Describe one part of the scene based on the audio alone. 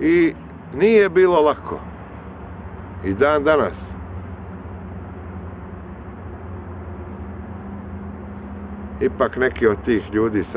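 A young man speaks calmly and close by, pausing between short phrases.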